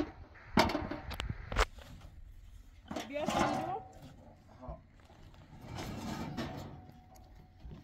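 Footsteps clank on a metal truck bed as a man climbs up.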